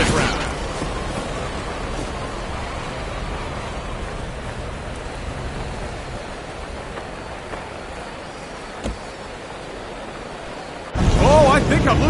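A race car engine winds down as the car coasts to a stop.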